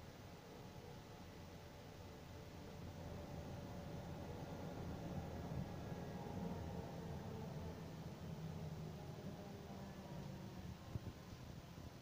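A vehicle's engine hums steadily from inside as it drives along.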